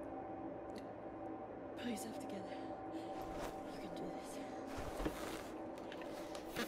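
A young woman breathes heavily and murmurs to herself.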